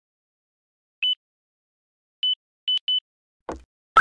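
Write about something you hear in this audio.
An elevator button beeps when pressed.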